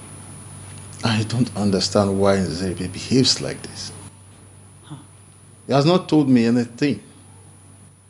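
An older man speaks calmly and slowly close by.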